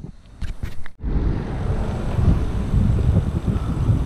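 Wind rushes past as a bicycle rides along outdoors.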